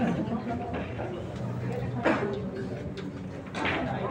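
A cue stick strikes a billiard ball with a sharp click.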